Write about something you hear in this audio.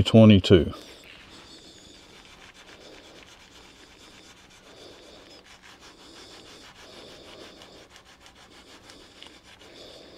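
Sandpaper rubs softly against spinning wood.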